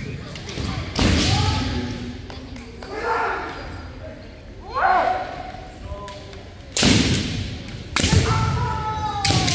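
Kendo fighters shout sharp, drawn-out kiai cries.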